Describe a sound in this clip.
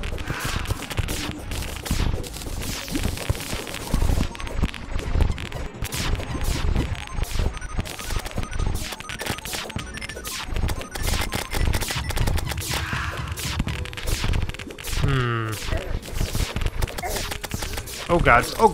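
Rapid magic blasts fire and burst in quick succession.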